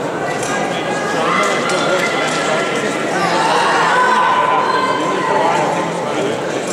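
A crowd cheers loudly.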